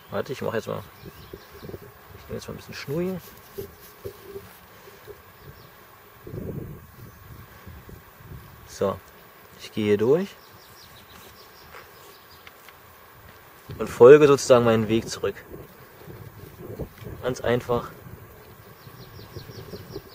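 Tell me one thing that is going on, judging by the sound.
A thin cord rustles softly as it is pulled through a loop.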